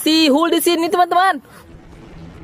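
A battery toy plays a loud, high electronic tune.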